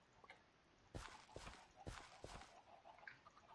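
A hoe digs into soil with short crunchy thuds.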